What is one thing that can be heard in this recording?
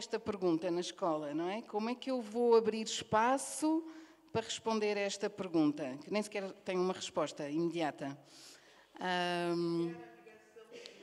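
A woman speaks calmly into a microphone in a large echoing room.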